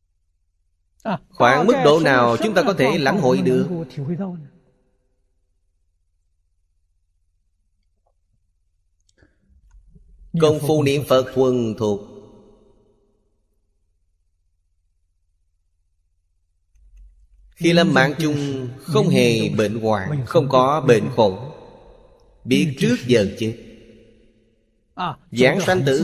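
An elderly man speaks calmly and slowly into a close microphone, with long pauses.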